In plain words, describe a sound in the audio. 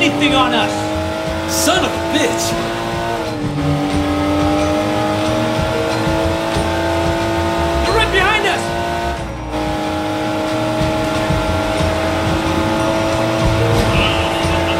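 A car engine hums steadily, dropping in pitch briefly as it shifts gear.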